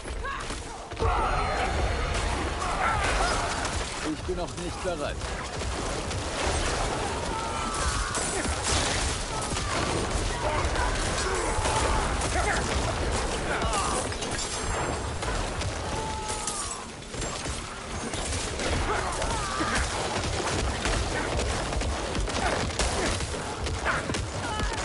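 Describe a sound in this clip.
Spells and weapons crash and boom in a fierce fight.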